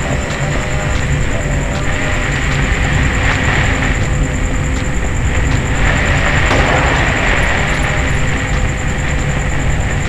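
Footsteps thud slowly and evenly on a hard floor.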